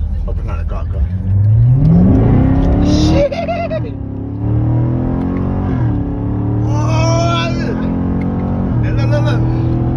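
A car engine revs up loudly through the gears as the car accelerates.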